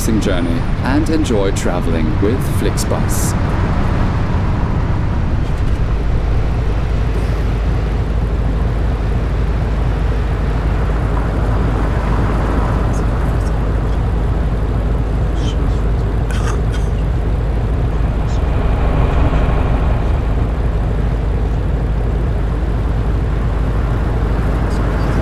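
A bus engine hums low and steady.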